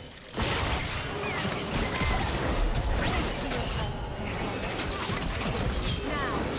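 Game spell effects whoosh and crackle in quick bursts.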